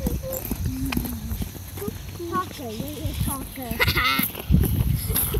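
Young children talk and chatter close by.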